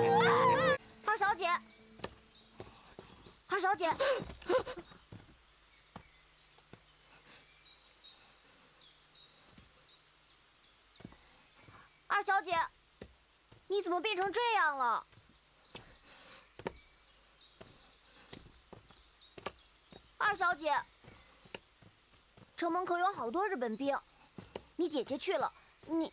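A young boy calls out and speaks with urgency close by.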